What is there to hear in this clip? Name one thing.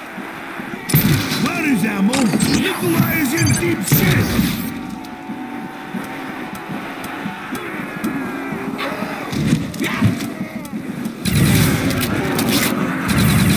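An electric weapon crackles and zaps in bursts.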